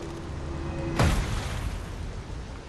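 A heavy wooden box thuds onto the ground.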